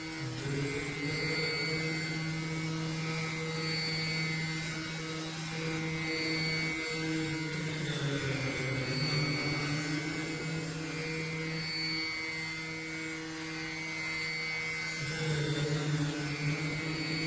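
A man sings in a classical style into a microphone.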